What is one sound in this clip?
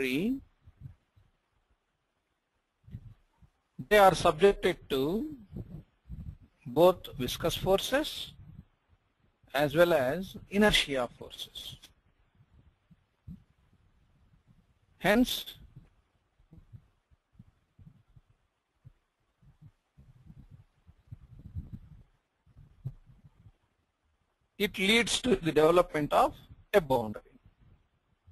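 A man speaks calmly into a close microphone, explaining in short bursts with pauses.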